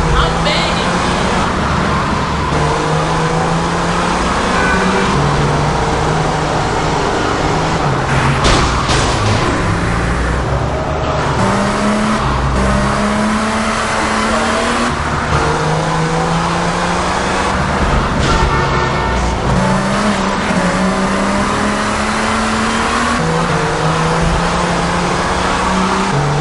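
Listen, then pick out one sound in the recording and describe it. A car engine revs as the car speeds along.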